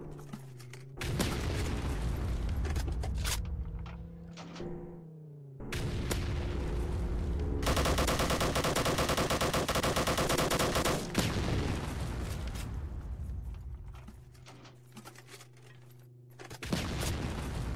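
Shells explode with loud booms.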